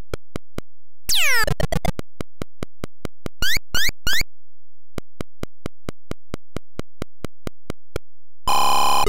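Retro computer game beeps tick steadily as a figure walks.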